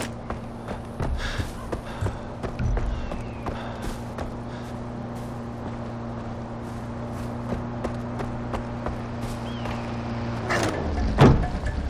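A car engine hums steadily, then cuts off.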